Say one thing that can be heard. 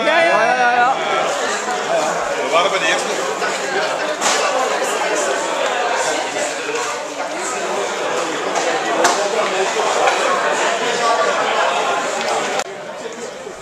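A group of women laugh close by.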